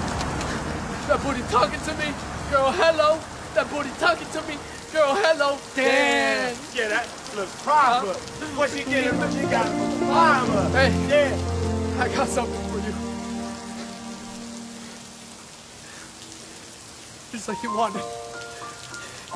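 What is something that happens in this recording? A man sings loudly with strain.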